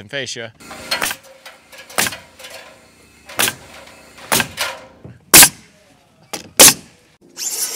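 A nail gun fires with sharp bangs.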